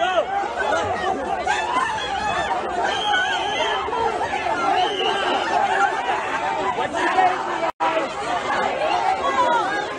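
A crowd of people shouts loudly outdoors.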